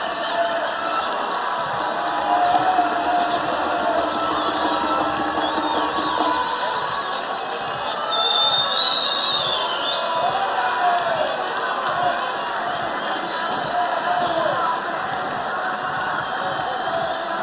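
A crowd of men's voices chatters and shouts nearby outdoors.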